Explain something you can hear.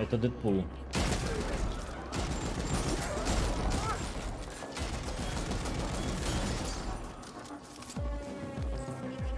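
Gunfire and blasts crackle from a video game.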